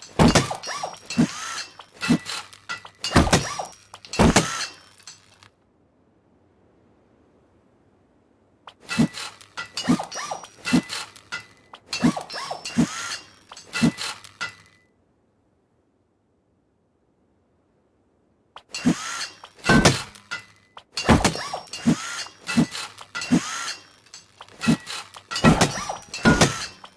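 A hammer strikes a wall again and again with sharp, ringing knocks.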